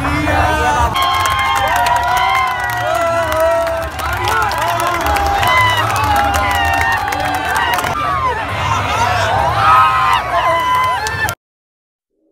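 A crowd of young men shouts and cheers loudly close by.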